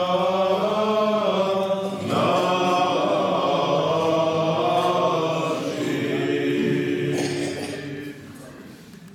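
Men's voices chant together in a resonant, echoing room.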